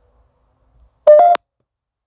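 A handheld device beeps sharply.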